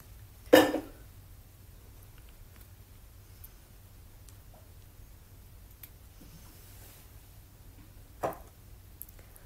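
A young woman speaks softly and briefly, close to the microphone.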